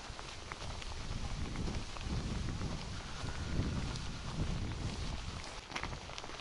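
Wind blows outdoors, gusting and rumbling.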